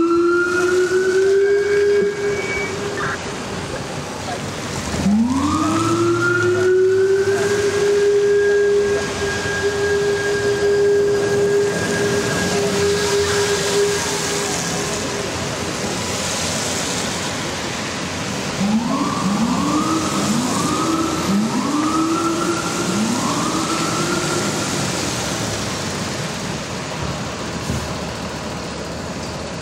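City traffic rumbles past on a wet street.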